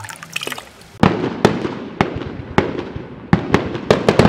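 Fireworks bang and crackle.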